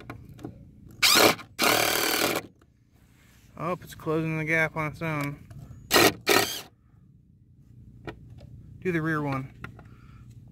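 A cordless impact driver whirs and rattles in short bursts as it drives screws into wood.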